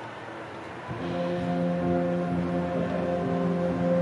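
A person plays a steady droning tune on a small handheld instrument.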